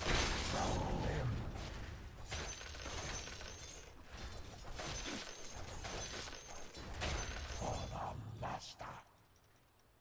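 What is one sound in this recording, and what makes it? Weapons clash and spells crackle in a busy fight.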